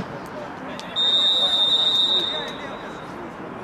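A referee blows a long, shrill whistle.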